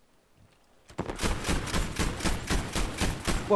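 A heavy machine gun fires in a rapid string of loud shots.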